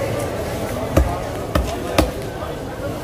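A knife blade knocks sharply on a wooden chopping block.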